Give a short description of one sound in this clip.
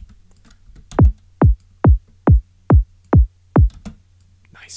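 A deep electronic kick drum booms six times in a steady row, each hit dropping in pitch.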